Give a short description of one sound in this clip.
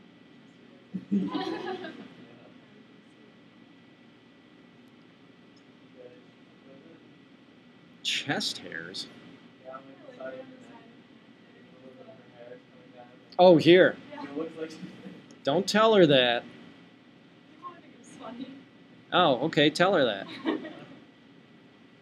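A young woman speaks calmly into a nearby microphone, in short bursts with pauses.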